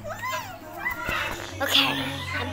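A child speaks close by.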